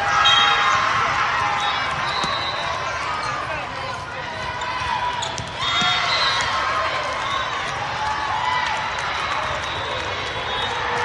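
A crowd of spectators chatters and cheers throughout a large echoing hall.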